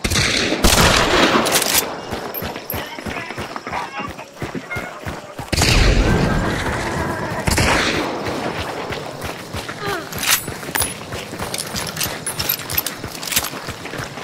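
Footsteps crunch steadily on dry dirt and grass.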